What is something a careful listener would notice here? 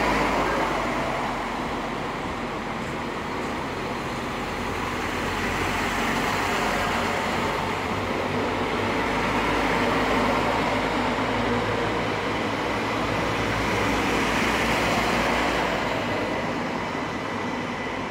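A train's motor hums with a steady whine.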